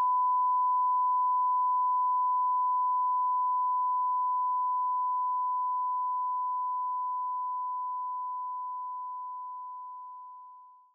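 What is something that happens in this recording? A steady, high-pitched test tone beeps without a break and slowly fades away.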